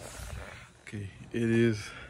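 A man laughs close by.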